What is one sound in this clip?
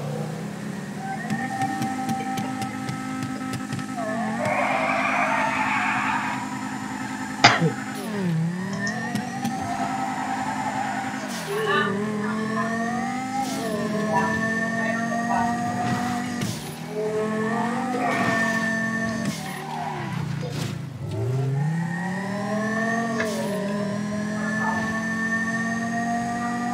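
A sports car engine revs hard, rising and falling as it shifts gears.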